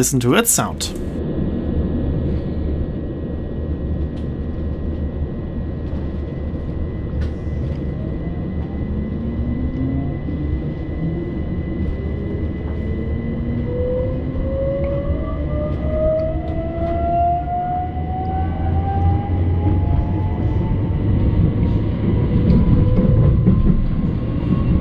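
A train rumbles along the tracks, close by.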